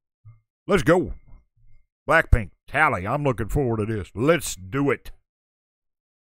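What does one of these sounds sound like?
An older man talks with animation, close into a microphone.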